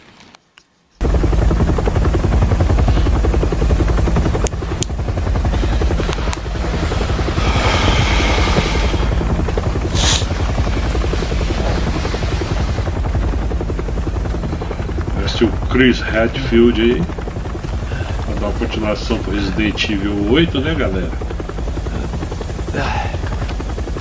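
Helicopter rotor blades thump overhead with a steady, deep roar.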